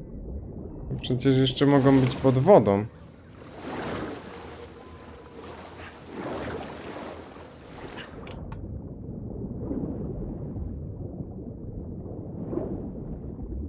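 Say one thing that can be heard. Water splashes and swirls as a swimmer moves through it.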